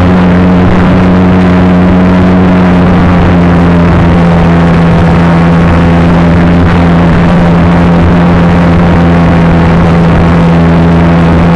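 Wind rushes loudly past the aircraft.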